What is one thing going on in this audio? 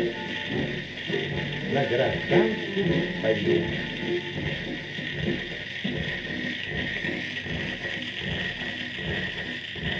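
Surface noise crackles and hisses from a spinning record.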